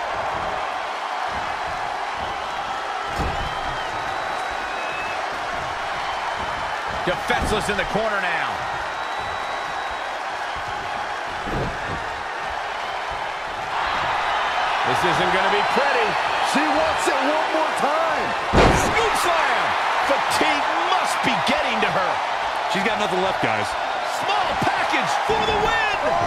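A large arena crowd cheers and murmurs.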